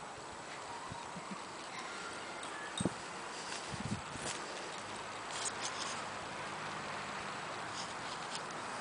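Dogs run and romp on grass.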